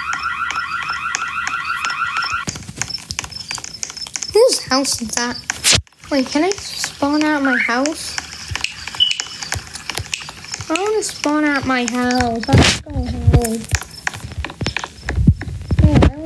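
Quick footsteps patter on pavement.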